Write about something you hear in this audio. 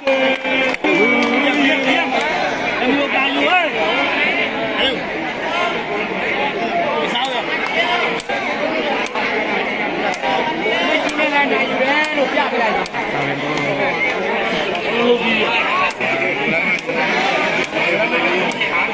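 A large crowd of men chatters and calls out loudly outdoors.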